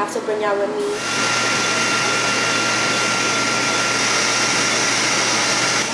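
A machine hums and hisses steadily.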